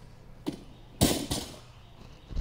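A bumper-plated barbell crashes onto the ground.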